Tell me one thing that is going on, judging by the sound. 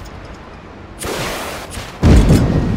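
A rocket launches with a whoosh.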